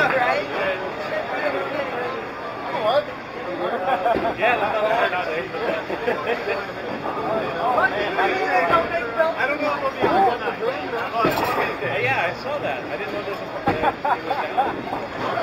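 A crowd of people chatters in a busy echoing hall.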